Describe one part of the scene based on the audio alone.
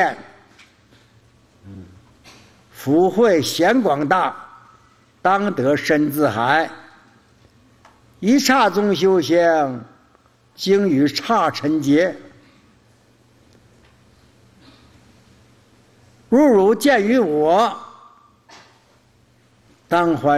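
An elderly man speaks slowly and calmly into a microphone, in chanting phrases with long pauses.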